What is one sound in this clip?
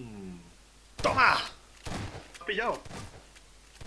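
A shotgun fires two loud blasts.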